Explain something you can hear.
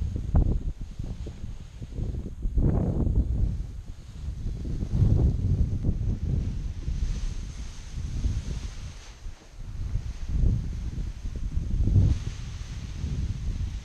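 A paraglider canopy's fabric rustles and flaps as it fills with air.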